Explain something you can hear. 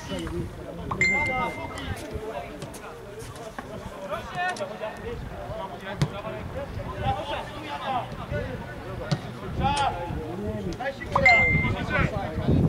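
A referee's whistle blows short blasts.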